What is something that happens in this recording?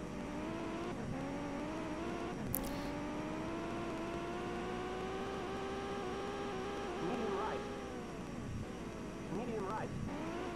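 A racing car engine roars, rising steadily in pitch as it speeds up, then dropping as it slows.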